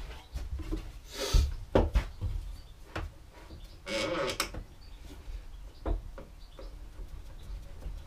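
A hand tool scrapes across a round piece of wood.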